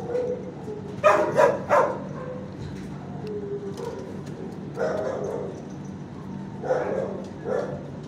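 A dog barks sharply nearby.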